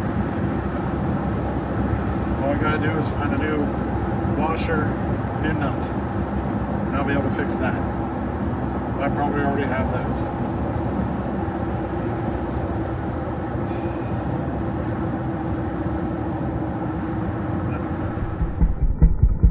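A truck engine drones steadily inside the cab.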